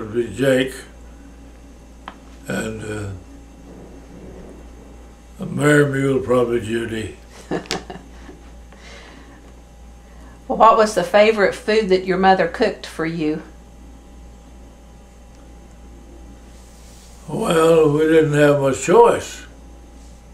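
An elderly man speaks calmly and slowly, close by, with pauses.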